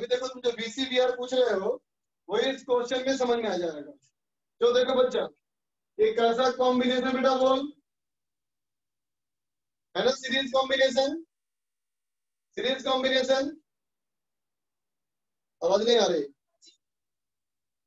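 A man speaks with animation, close by, in short bursts with pauses.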